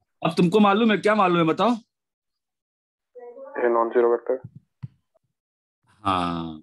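A man explains in a calm lecturing voice through a microphone.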